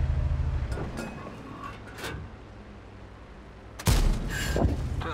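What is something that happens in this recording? A tank engine rumbles low.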